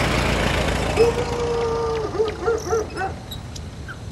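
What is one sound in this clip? A crow caws loudly several times.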